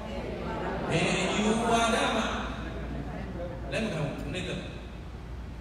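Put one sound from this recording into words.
A man chants slowly into a microphone in an echoing hall.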